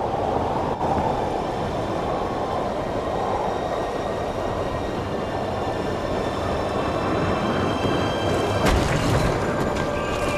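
Wind blows steadily in the open air.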